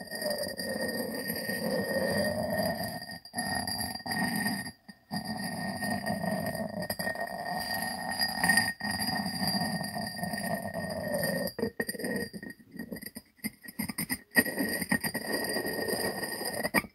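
A ceramic lid clinks and scrapes against a ceramic jar.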